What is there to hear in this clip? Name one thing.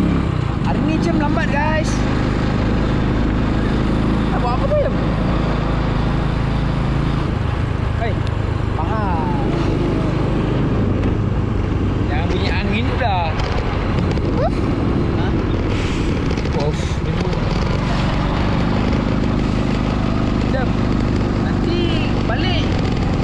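A man talks loudly over the engine noise.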